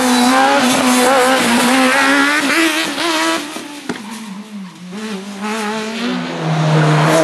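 A racing car engine roars and revs hard as it accelerates away.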